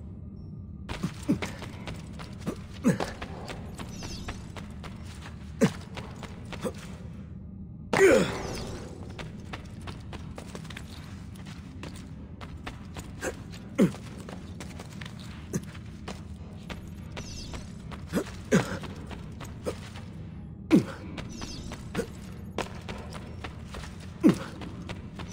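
Footsteps thud on stone as a runner leaps and lands.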